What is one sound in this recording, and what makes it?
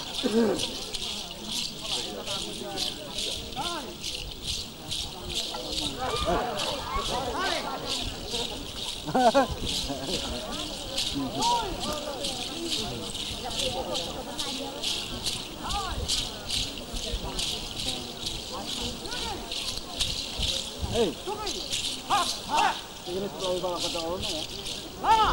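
A group of dancers stamps their feet in a steady, quick rhythm outdoors.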